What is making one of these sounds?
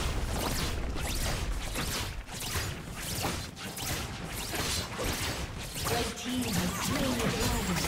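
Video game spells and attacks crackle and burst in a busy fight.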